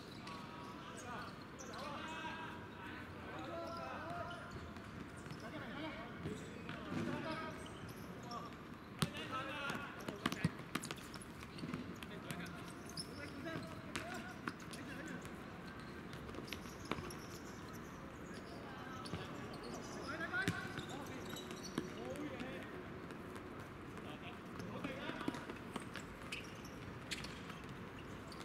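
Young players shout and call out to each other outdoors on an open court.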